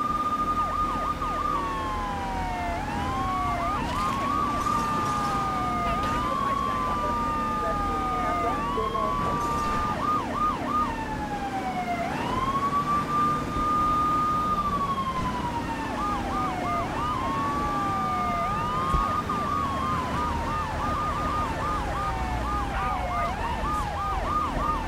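A car engine roars as it speeds along.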